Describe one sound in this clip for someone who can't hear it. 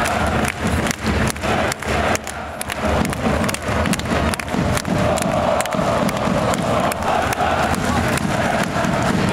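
A large crowd roars in a big echoing arena.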